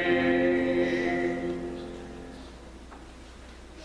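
A piano chord rings out and slowly fades away.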